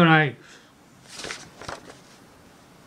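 Paper rustles as a sheet is turned over.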